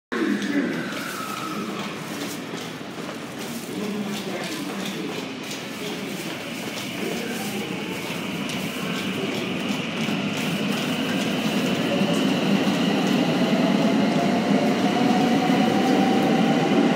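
Train brakes squeal and whine.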